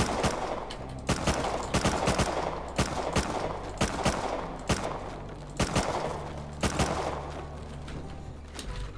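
Footsteps thud and rustle through dry plants.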